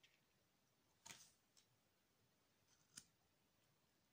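A card taps and slides softly on a table.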